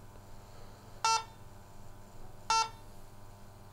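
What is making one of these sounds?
An electronic device gives two short, sharp beeps.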